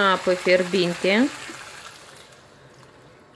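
Water pours into a pot of stew.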